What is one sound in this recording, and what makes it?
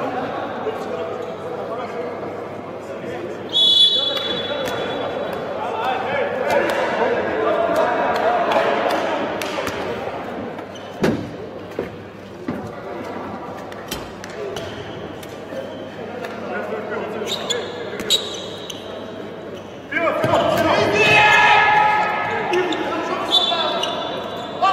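A handball bounces on a hard court in a large echoing hall.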